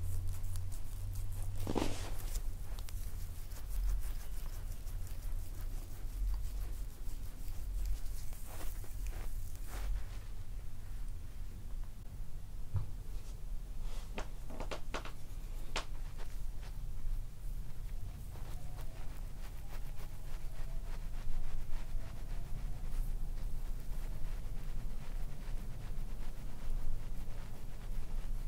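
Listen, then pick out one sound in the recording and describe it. Hands rub and knead bare skin close up, with soft brushing and rustling.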